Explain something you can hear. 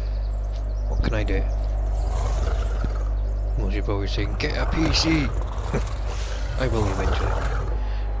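Large creatures growl and grunt close by.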